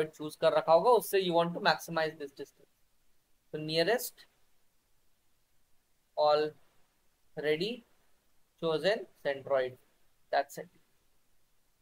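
A young man speaks calmly through an online call, in short phrases with pauses.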